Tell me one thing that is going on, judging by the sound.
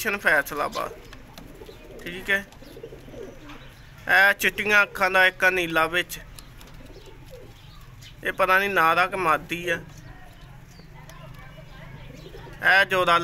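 Pigeons coo in deep, rolling bursts close by.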